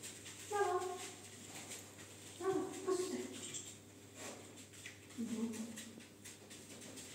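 A young woman calls out nearby in a high, coaxing voice.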